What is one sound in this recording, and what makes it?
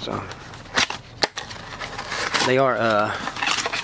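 A cardboard box flap is pulled open with a scrape.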